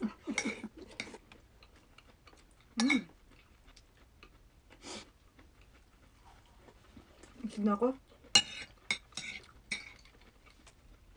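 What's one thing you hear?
A woman chews food close to a microphone, with wet mouth sounds.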